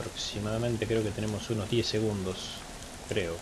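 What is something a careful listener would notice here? A man talks in a low voice nearby.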